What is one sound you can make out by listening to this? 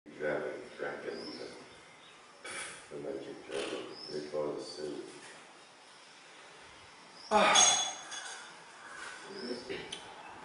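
A middle-aged man speaks calmly and thoughtfully, close by.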